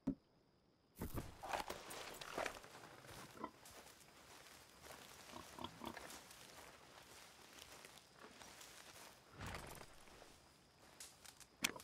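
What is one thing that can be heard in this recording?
Footsteps crunch slowly on soft ground.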